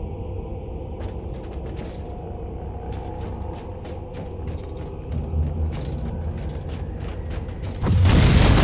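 Heavy footsteps clank on metal grating.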